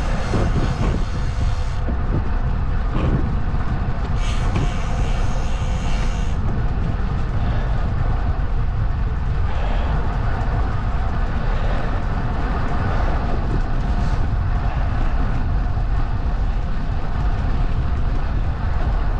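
Wheels roll steadily over rough asphalt.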